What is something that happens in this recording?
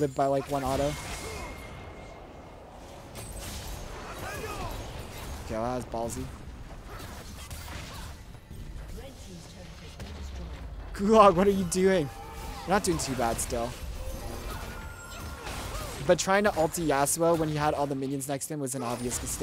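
Game sound effects of spells and hits play.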